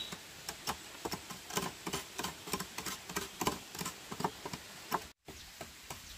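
A knife chops rapidly into bamboo.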